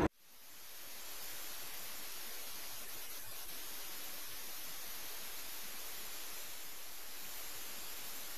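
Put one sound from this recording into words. Water laps gently against wooden boats.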